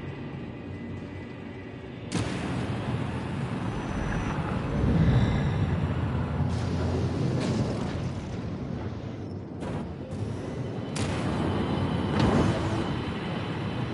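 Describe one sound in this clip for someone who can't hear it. A spaceship engine roars and whooshes as it flies low.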